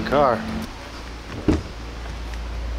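A car door handle clicks open.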